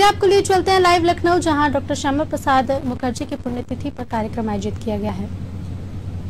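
A young woman reads out the news into a studio microphone.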